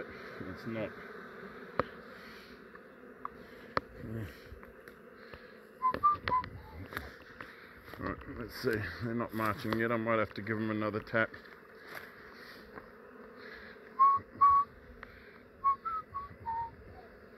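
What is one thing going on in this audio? A swarm of honey bees buzzes close by.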